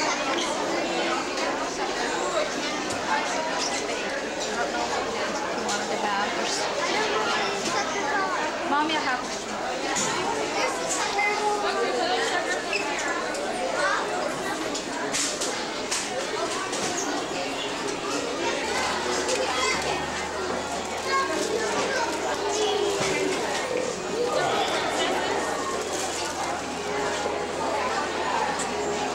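A crowd of people chatters in a busy room.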